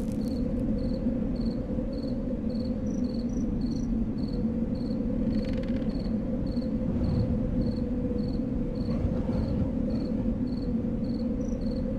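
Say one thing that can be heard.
Footsteps tap at a steady, quick pace.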